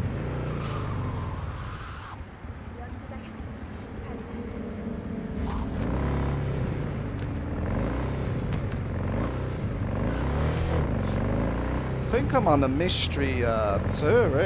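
A motorcycle engine hums and revs steadily.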